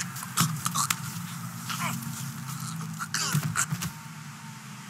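Sharp blows land in a short scuffle.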